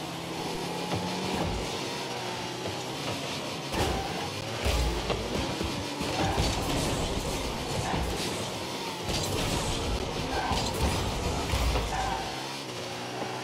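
A car engine revs and roars.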